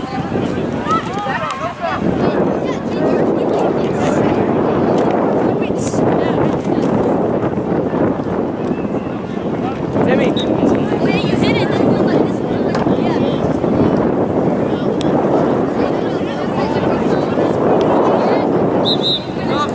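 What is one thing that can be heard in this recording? Spectators on the sideline call out and chatter at a distance.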